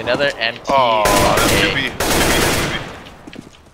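A rifle fires a couple of loud shots.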